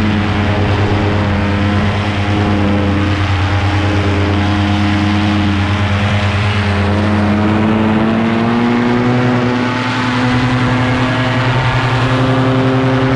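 A paramotor engine drones loudly and steadily, its pitch shifting slightly.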